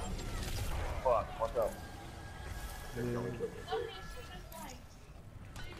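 Electronic game effects zap and chime in short bursts.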